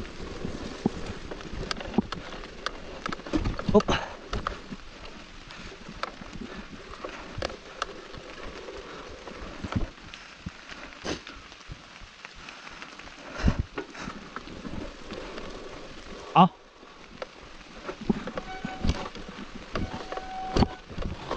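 A bicycle rattles and clatters over bumps and roots.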